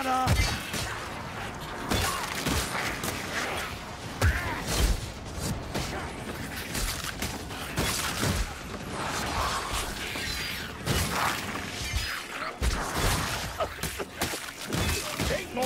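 Metal blades slash and strike creatures in quick, heavy blows.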